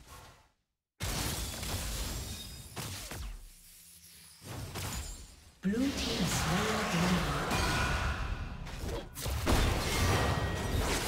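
Spells and blows crash and whoosh in a video game battle.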